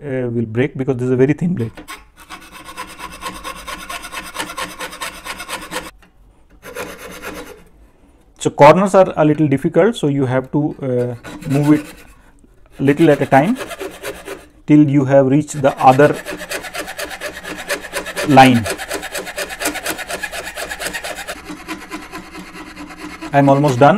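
A scroll saw blade buzzes steadily as it cuts through thin material.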